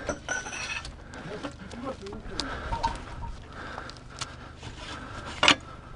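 A shell slides and clunks into a metal tube.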